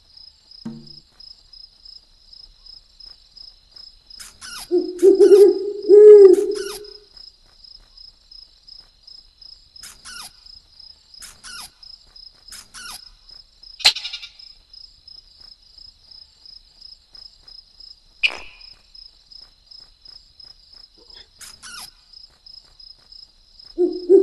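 A mouse's tiny footsteps patter quickly.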